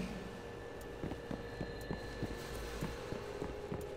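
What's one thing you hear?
Footsteps clank on a metal floor at a steady walking pace.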